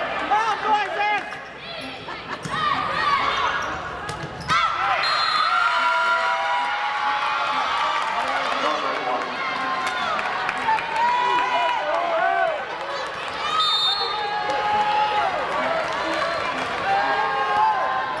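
A volleyball is struck with hard slaps.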